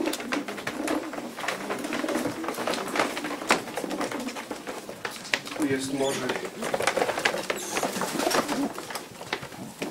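A metal cage grate rattles and clatters.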